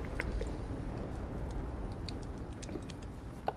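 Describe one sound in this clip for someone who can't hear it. Footsteps crunch quickly over snow.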